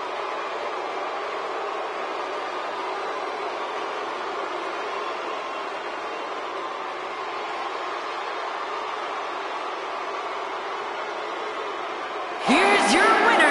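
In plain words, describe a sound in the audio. A large crowd roars and cheers steadily.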